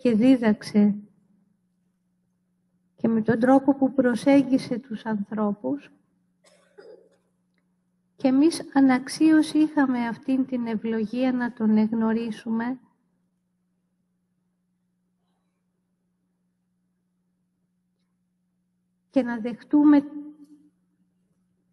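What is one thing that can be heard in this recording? A woman speaks calmly through a microphone, pausing between phrases.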